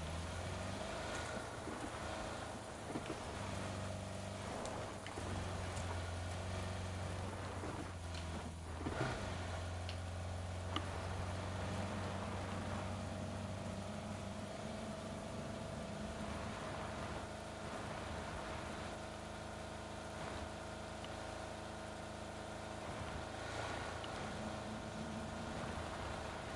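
A car engine hums steadily as a car drives over rough ground.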